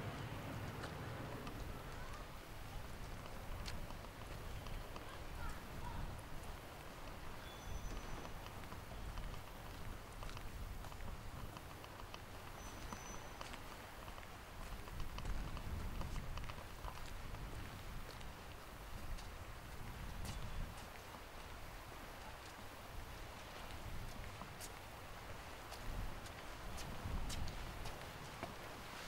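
Sea waves wash against the breakwater in the distance.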